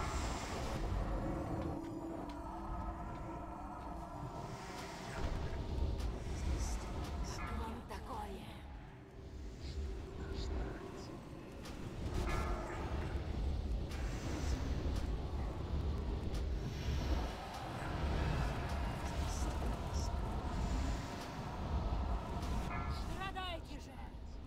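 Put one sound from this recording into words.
Spell effects and combat sounds crackle and boom throughout a game battle.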